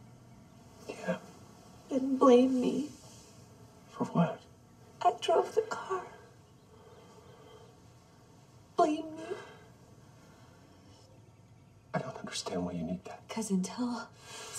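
A man speaks gently and earnestly close by.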